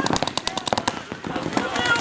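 A paintball gun fires rapid popping shots close by.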